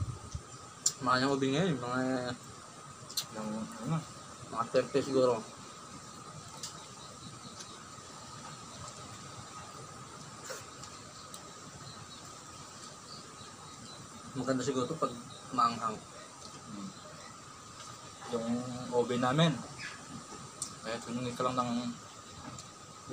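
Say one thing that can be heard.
Young men talk casually close by, in short bursts.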